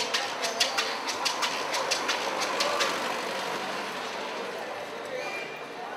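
A car drives past.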